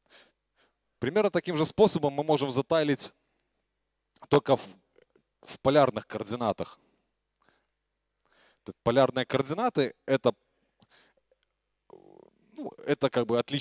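A man speaks through a microphone in a large hall, pausing between phrases.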